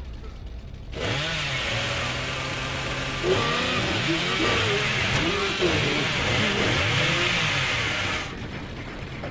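A chainsaw roars loudly at high revs.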